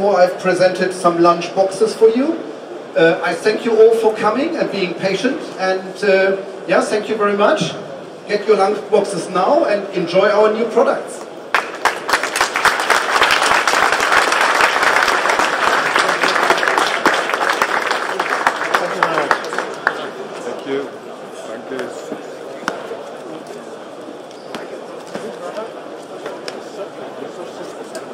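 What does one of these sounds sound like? A crowd murmurs in the background of a large hall.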